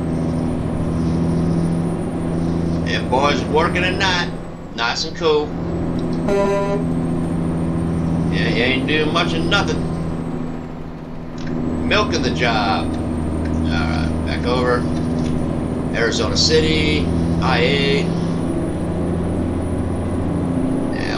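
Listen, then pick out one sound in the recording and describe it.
A truck engine drones steadily, dipping briefly as gears change.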